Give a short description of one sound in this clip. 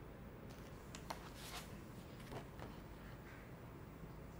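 Paper pages of a menu rustle as they are turned.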